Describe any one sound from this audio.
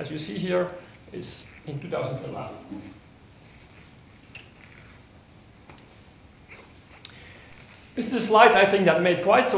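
A middle-aged man lectures through a microphone, pausing between phrases.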